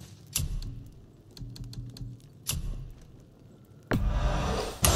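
Short menu clicks and ticks sound.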